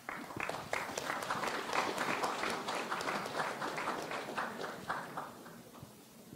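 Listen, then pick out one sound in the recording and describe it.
A woman speaks calmly through a microphone in a large room.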